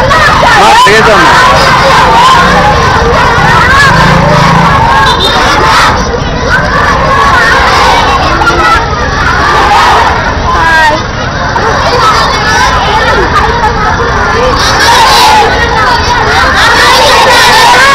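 A crowd of children chatter and shout loudly outdoors.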